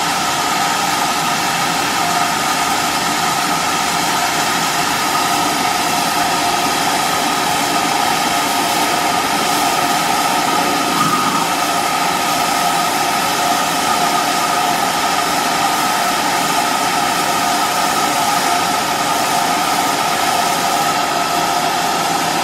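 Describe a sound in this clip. A steam locomotive hisses loudly and steadily as steam escapes.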